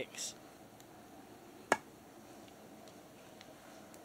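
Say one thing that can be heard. A blade knocks sharply into a block of wood.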